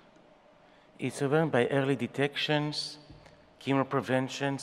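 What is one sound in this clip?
A middle-aged man speaks calmly into a microphone, heard through a loudspeaker in a large hall.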